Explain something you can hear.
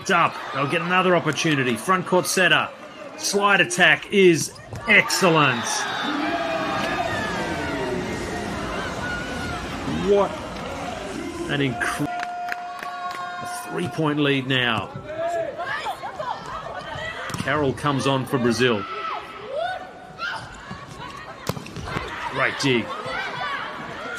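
A crowd cheers and claps in a large echoing arena.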